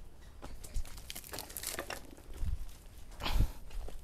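A heavy pot scrapes on the ground as it is lifted.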